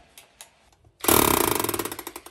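A power drill whirs loudly, drilling into metal.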